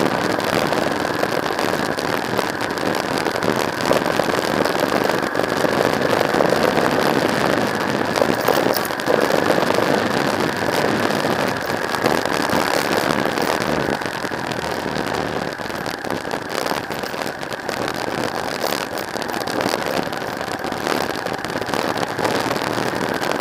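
Wind buffets loudly across a helmet microphone.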